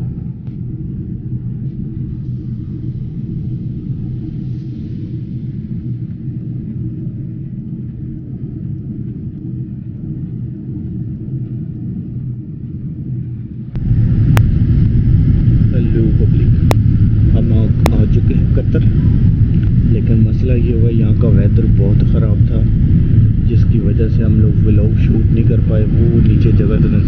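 A jet airliner's engines roar with a steady low drone, heard from inside the cabin.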